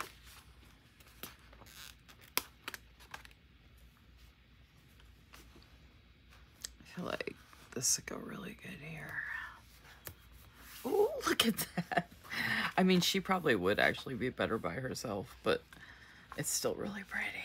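A glossy sheet of paper crinkles as it is handled.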